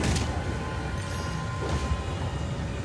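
A blade swishes through the air in quick slashes.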